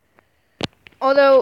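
A young boy calls out in a long, high-pitched voice.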